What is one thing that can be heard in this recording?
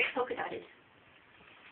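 A young girl speaks briefly and brightly nearby.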